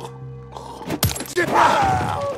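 A heavy blow thuds against a body.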